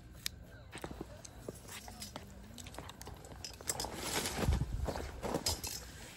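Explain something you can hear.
Chopsticks stir noodles in a paper cup.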